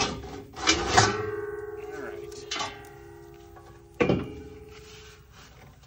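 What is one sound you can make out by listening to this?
A metal part rings after being struck.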